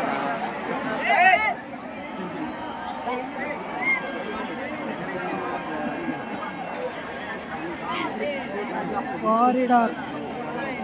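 Young men whoop and cheer loudly nearby.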